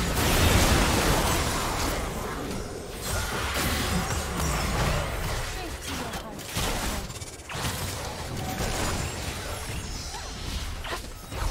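Video game spell effects whoosh and crackle during a team fight.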